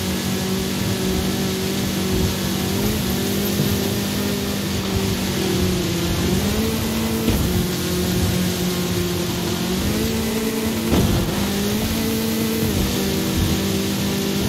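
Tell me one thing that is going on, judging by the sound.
Tyres rumble and crunch over sand and dirt.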